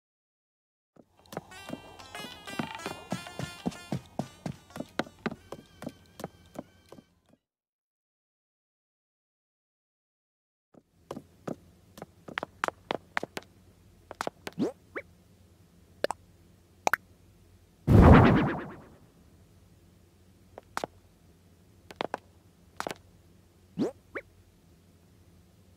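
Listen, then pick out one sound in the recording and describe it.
Footsteps tap lightly on a wooden floor.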